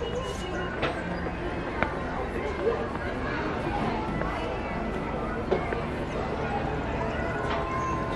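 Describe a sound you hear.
A crowd of people chatters at a distance.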